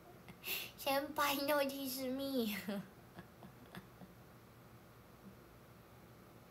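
A young woman giggles.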